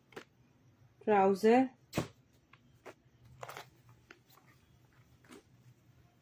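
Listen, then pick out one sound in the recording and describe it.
Fabric rustles as it is unfolded.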